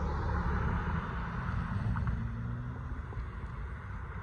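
A car drives past close by and fades away.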